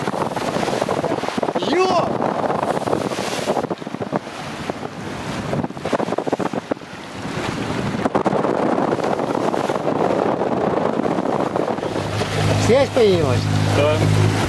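Sea water rushes and splashes past a moving boat.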